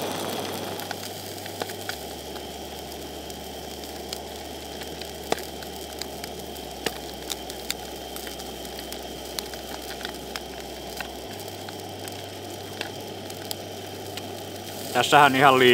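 A fork clicks and scrapes against a metal plate.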